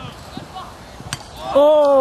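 A football is kicked hard with a thud.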